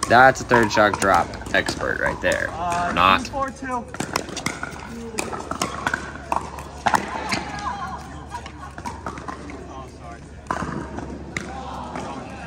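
Paddles pop sharply against a plastic ball.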